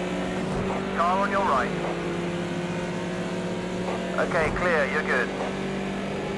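Tyres squeal briefly through corners.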